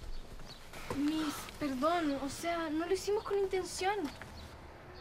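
A young girl speaks with animation nearby.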